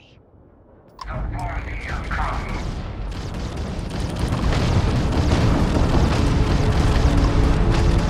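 A spaceship engine roars steadily and grows louder.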